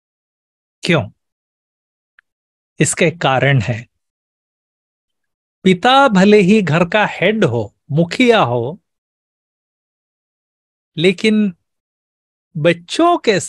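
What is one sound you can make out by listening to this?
An elderly man speaks warmly in bursts over an online call, with pauses between phrases.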